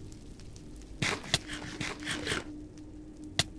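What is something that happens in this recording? Crunchy bites of food are chewed and eaten.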